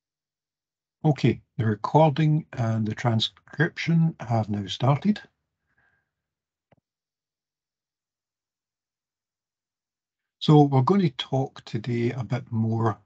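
A middle-aged man speaks calmly through an online call microphone.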